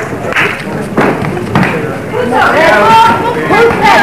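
Blows thud as two fighters clash.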